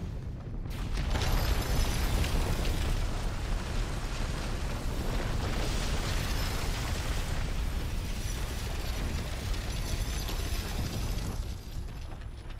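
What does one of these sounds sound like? A deep, roaring rumble swells and slowly dies down.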